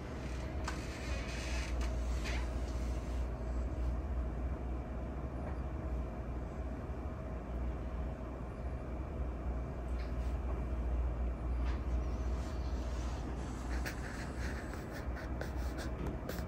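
A woman talks calmly, heard from across the room.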